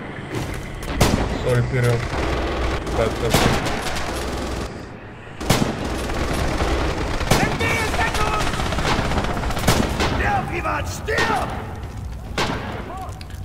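Gunshots crack loudly, one at a time, with a short echo.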